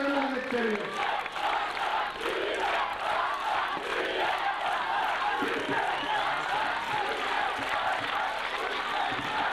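A large crowd chants and cheers loudly outdoors.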